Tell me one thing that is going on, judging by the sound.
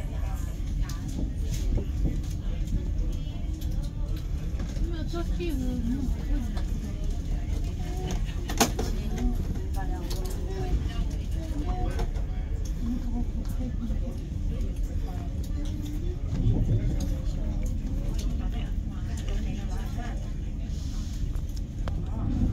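A train rumbles steadily as it rolls slowly along.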